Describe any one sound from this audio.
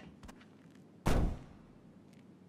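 A heavy truck door slams shut.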